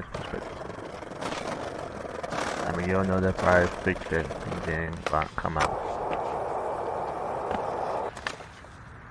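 Skateboard wheels rumble and clatter over cobblestones.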